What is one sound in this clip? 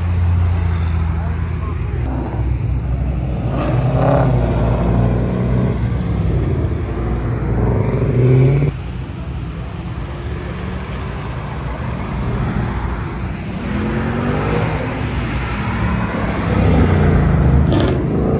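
Powerful car engines rumble and rev loudly close by.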